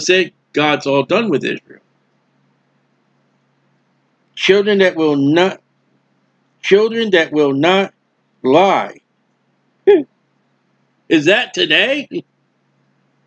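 A middle-aged man speaks calmly and closely into a microphone, with pauses.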